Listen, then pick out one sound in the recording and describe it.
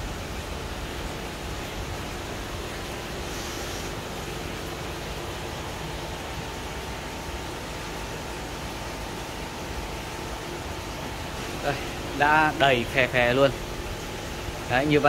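Water trickles and bubbles steadily through a hose into a tank.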